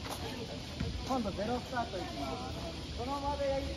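Children call out and shout with high voices nearby.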